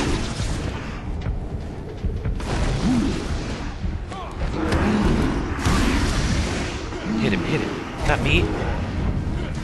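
Heavy punches and kicks land with dull thuds.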